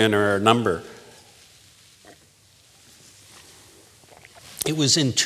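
A man speaks into a microphone in a large echoing hall.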